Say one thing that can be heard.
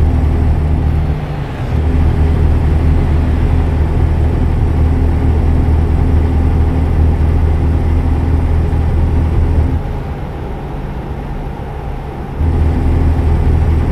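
A truck engine drones low and steady, dipping briefly now and then.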